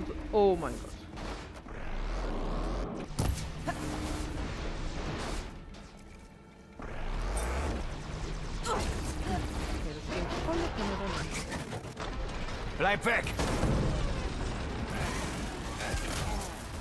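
Energy bolts zap and crackle as they strike.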